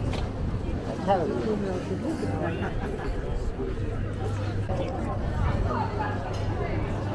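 Young women chat in passing nearby.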